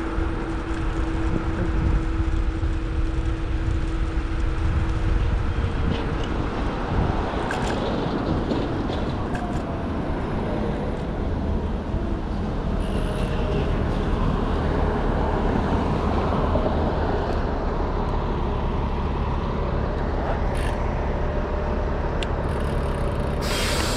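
Bicycle tyres roll on asphalt.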